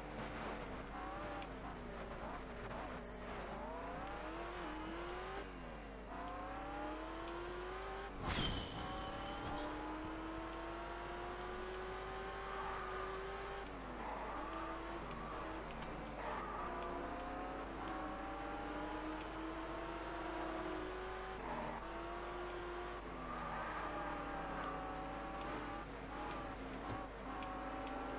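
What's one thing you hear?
A car engine revs up and down as it shifts gears.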